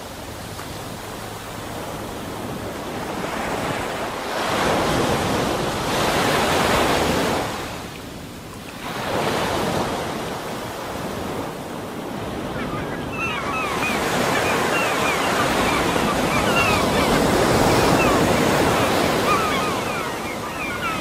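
Water bubbles and swooshes as a diver swims underwater.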